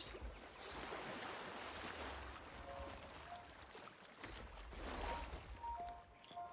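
Waves wash against the hull of a wooden ship.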